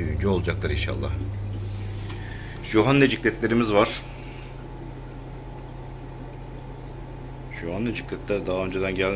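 An aquarium pump hums steadily.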